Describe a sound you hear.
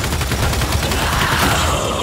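A creature bursts apart with a wet, explosive crunch.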